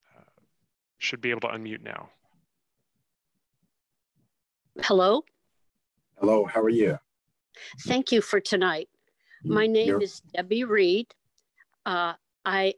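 A man speaks over an online call, in short calm phrases.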